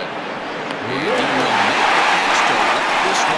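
A crowd cheers and roars louder.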